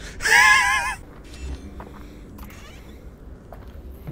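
A plastic door creaks open.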